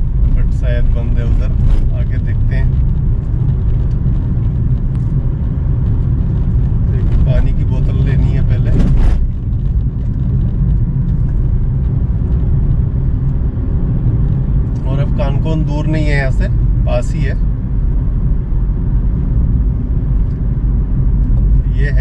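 A car engine rumbles steadily as the car drives along a rough dirt road.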